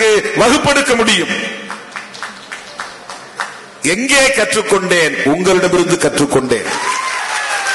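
A man speaks forcefully through a loudspeaker, echoing outdoors.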